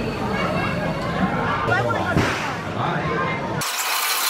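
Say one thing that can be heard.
A crowd of children chatter and shout excitedly nearby.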